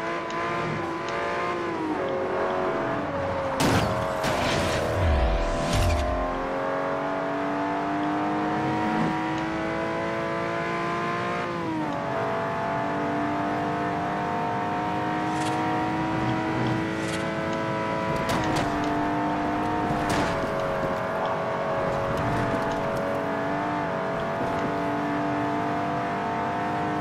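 A racing car's engine roars at high revs, shifting gears as it speeds up.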